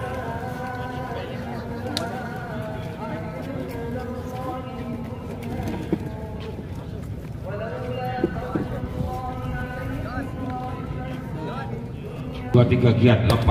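A group of young men chant together outdoors.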